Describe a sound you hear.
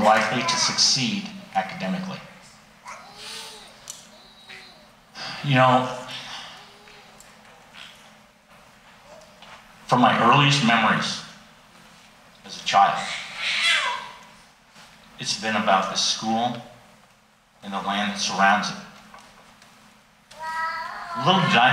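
An older man speaks calmly through a microphone and loudspeakers in an echoing hall.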